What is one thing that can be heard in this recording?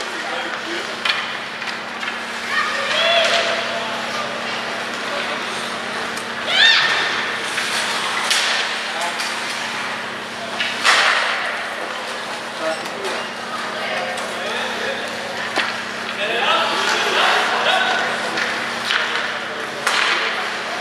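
Hockey sticks clack against a puck, echoing in a large arena.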